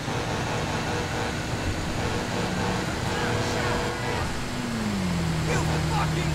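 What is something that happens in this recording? Traffic rushes past on a highway.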